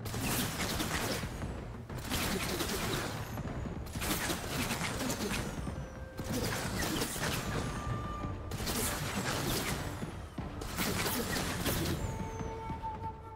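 A heavy machine gun fires in long, loud bursts.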